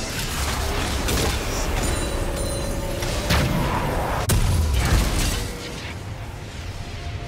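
Game sound effects whoosh and clash as a character fights.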